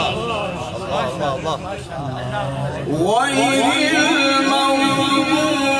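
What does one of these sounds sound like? A man recites in a loud chanting voice through a microphone.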